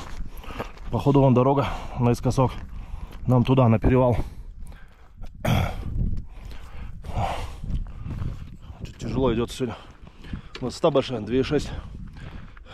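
A man talks close by, out of breath.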